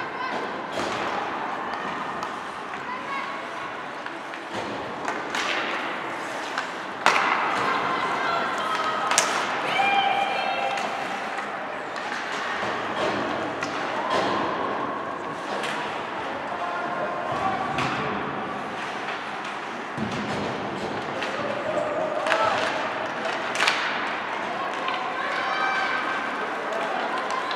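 Skates scrape and carve across the ice in an echoing rink.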